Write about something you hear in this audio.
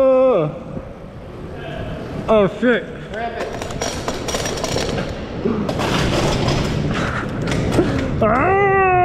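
Bicycle tyres roll over concrete with a rising rumble.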